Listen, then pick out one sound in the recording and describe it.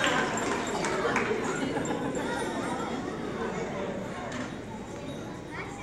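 A woman speaks into a microphone over loudspeakers in a large echoing hall.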